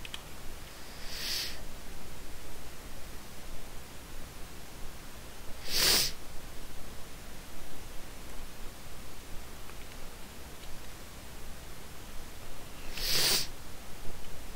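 A shotgun fires loud single blasts every few seconds.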